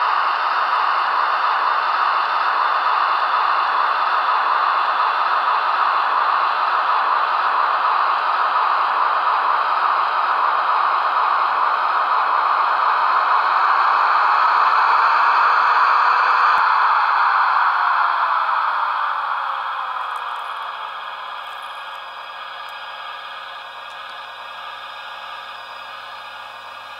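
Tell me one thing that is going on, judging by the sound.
A model train rumbles along the track with a steady whirr.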